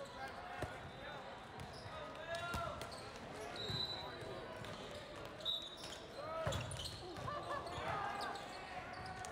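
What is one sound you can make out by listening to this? Players and spectators call out and chatter in a large echoing hall.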